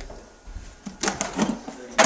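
A metal case thumps on a table.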